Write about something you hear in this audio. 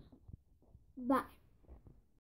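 A young girl speaks briefly close up.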